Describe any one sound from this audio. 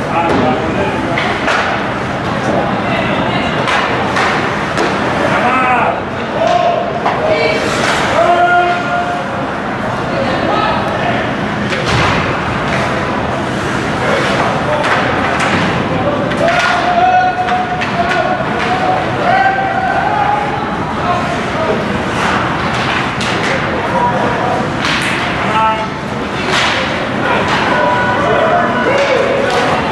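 Young men shout and call out across an echoing rink.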